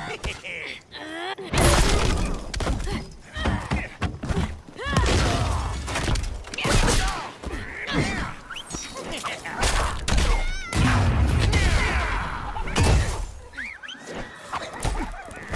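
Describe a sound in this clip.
Punches and kicks land with heavy thuds in a video game fight.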